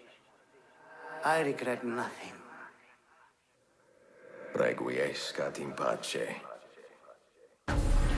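A dying man speaks weakly and slowly, close by.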